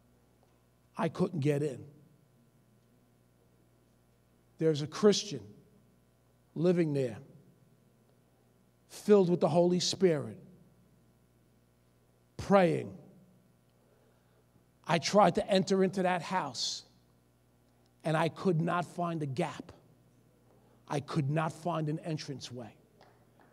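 A middle-aged man preaches into a microphone in short, forceful bursts with pauses between them.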